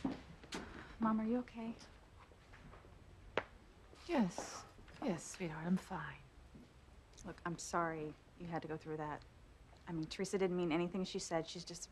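A woman answers calmly, close by.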